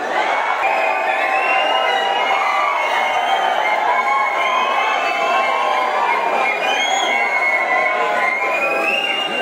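A large crowd sings and cheers loudly in an echoing hall.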